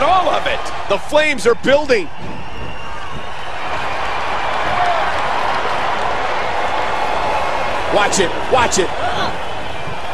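A crowd cheers in a large arena.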